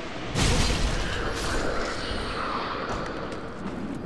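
Footsteps scrape on a stone floor.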